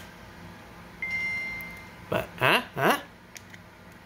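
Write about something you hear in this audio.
A handheld game console plays a short startup chime.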